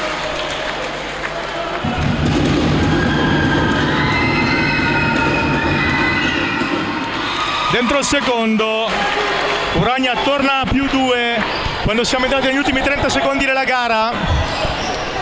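Spectators murmur and cheer in a large echoing gym.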